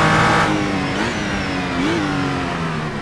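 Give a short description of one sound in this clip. Car gears shift with sharp blips of the engine.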